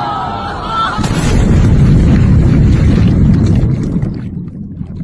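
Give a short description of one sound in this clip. A big wave crashes and splashes over a crowd.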